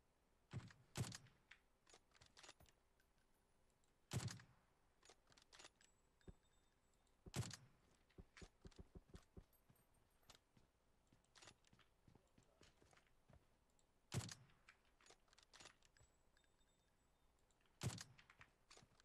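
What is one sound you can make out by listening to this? Sniper rifle shots crack loudly, one at a time, with a short echo.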